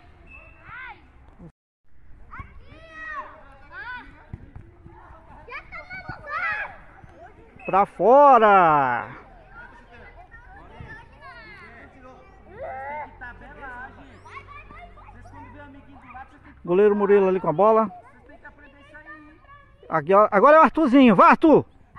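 Young children shout and call out excitedly outdoors.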